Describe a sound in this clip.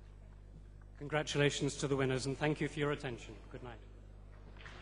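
A middle-aged man speaks calmly into a microphone, heard through loudspeakers in a large hall.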